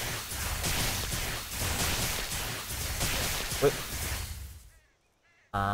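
Fighting sound effects crash and swoosh rapidly.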